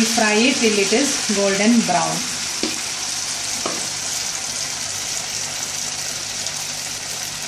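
Oil sizzles and bubbles steadily in a frying pan.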